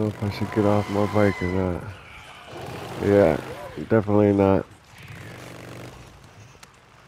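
A motorcycle engine revs up and down.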